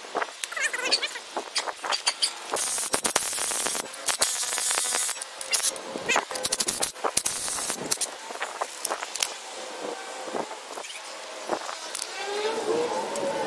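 Metal parts clink and knock.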